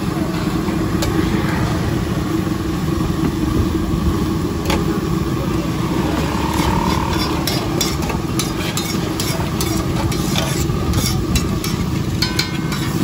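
A steel ladle clinks against steel pots.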